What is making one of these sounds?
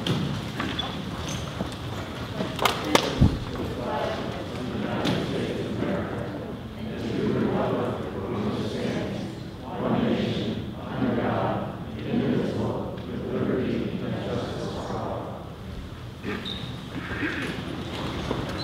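A group of men and women recite together in unison in a large echoing hall.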